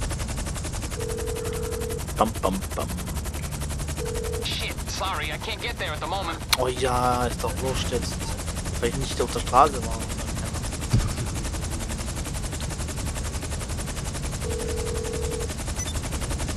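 A phone gives short ringing tones.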